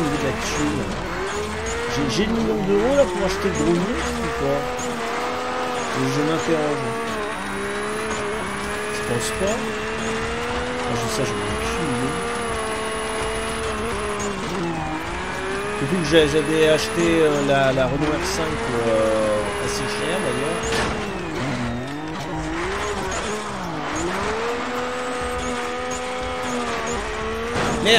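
A rally car engine revs high and shifts gears throughout.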